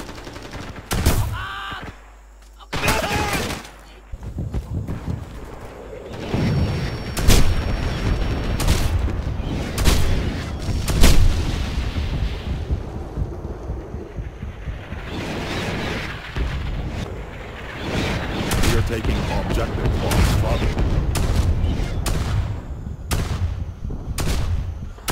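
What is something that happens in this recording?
A shotgun fires loud, sharp blasts.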